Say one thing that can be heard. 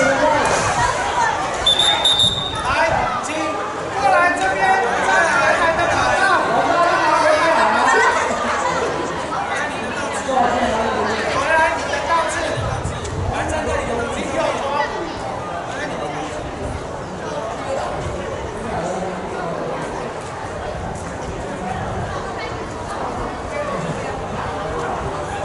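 A crowd of young people chatters and calls out outdoors.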